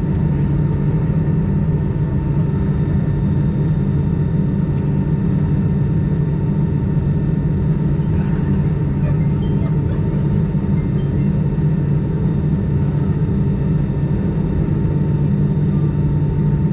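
Jet engines hum and whine steadily inside an aircraft cabin as it taxis.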